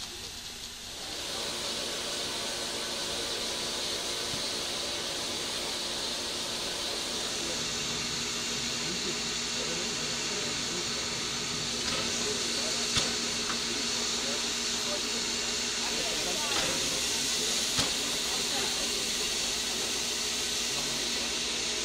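Steam hisses loudly and steadily from a locomotive.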